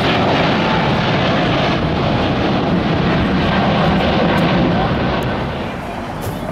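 Jet engines roar loudly as an airliner climbs overhead.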